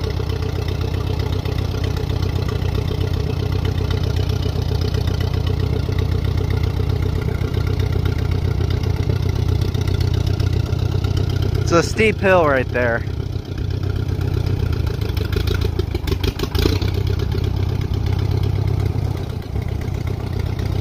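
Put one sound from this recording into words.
An old tractor engine idles with a steady low chugging.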